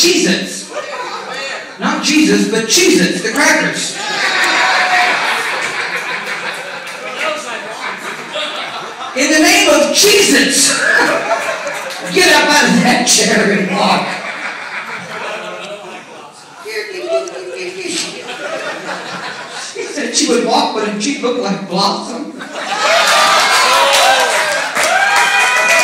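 A woman talks animatedly into a microphone, heard through loudspeakers.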